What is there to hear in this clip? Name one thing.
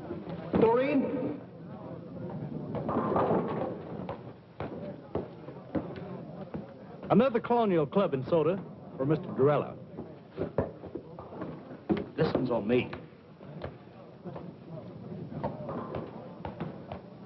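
A crowd of people murmurs in the background.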